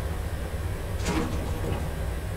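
A door slides open with a short hiss.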